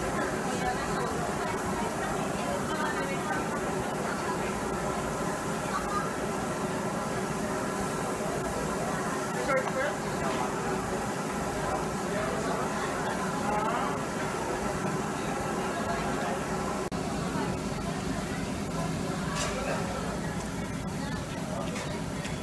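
A crowd of men and women chatter steadily nearby in a busy room.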